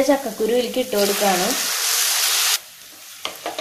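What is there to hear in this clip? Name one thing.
Chopped vegetables are poured into a frying pan.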